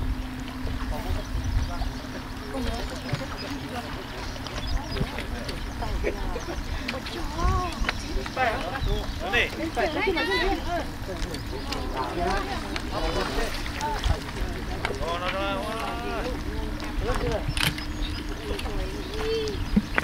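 A river flows and gurgles steadily nearby.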